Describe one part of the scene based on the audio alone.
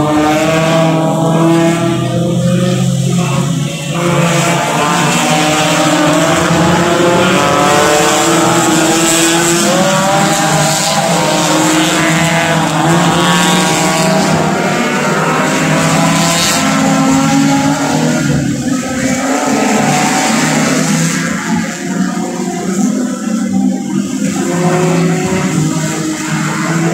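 Racing car engines roar and whine loudly as they speed past.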